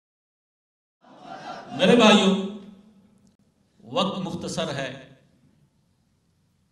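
A man speaks forcefully into a microphone, heard through loudspeakers.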